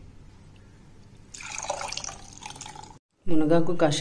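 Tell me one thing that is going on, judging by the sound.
Liquid pours through a metal strainer into a glass.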